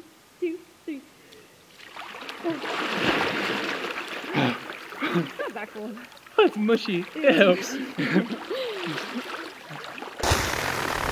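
Men shout and yelp out in the water.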